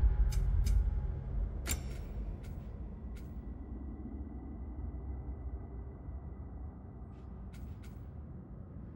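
Short menu clicks tick as a selection moves.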